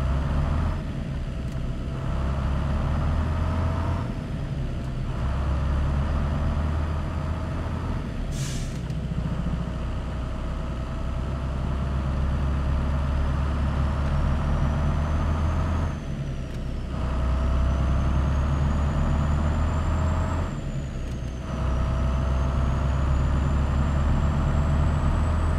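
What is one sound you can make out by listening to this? A truck's diesel engine rumbles steadily, dropping briefly as the gears shift.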